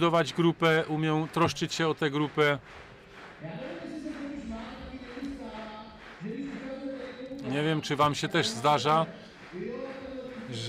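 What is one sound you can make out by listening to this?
A man speaks with animation through a microphone over loudspeakers in a large echoing hall.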